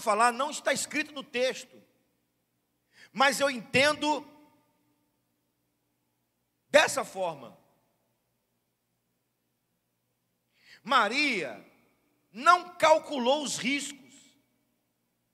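A middle-aged man speaks calmly into a microphone, in short phrases with long pauses.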